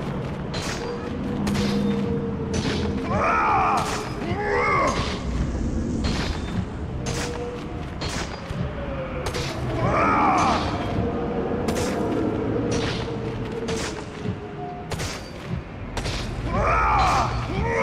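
Wind howls across open ground.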